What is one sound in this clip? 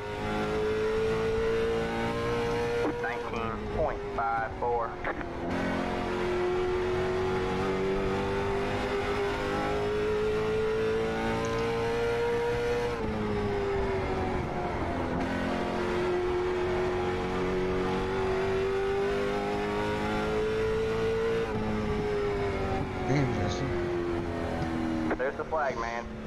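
A race car engine drones loudly, rising and falling as it speeds up and slows down around the track.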